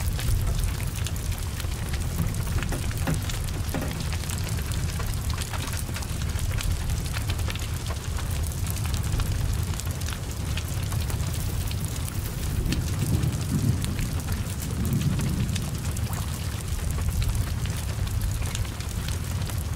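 Rain patters steadily on wet ground.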